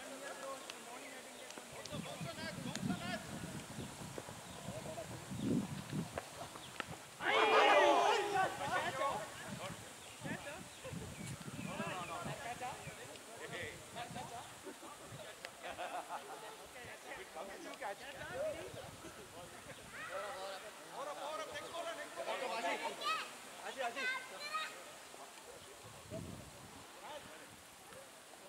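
Men call out and talk at a distance outdoors.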